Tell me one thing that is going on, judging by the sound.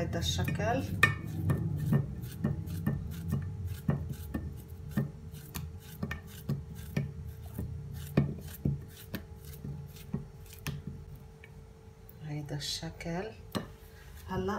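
Banana slices drop onto a glass dish with small clicks.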